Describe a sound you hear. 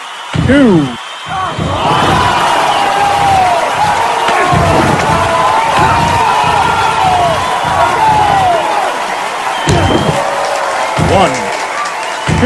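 A large crowd cheers and whistles in a big arena.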